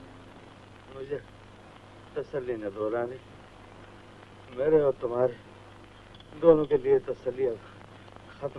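An older man speaks slowly and with pauses.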